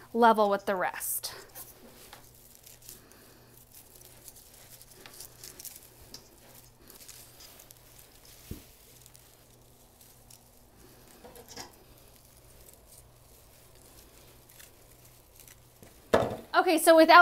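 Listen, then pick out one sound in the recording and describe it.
Evergreen branches rustle softly as hands work them into a wreath.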